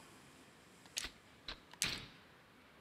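A short electronic chime sounds several times.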